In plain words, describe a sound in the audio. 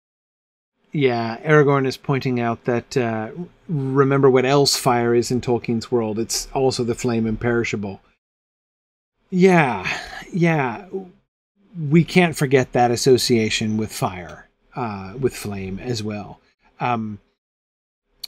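A middle-aged man reads aloud into a microphone with expression.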